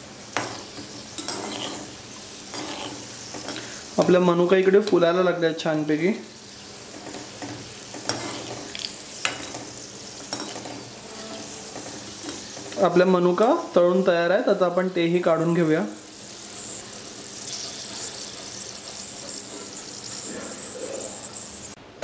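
Oil sizzles and bubbles in a pan.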